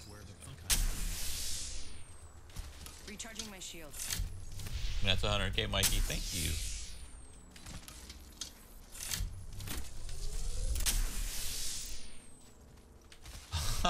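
An electric charging whoosh swells and fades away, several times.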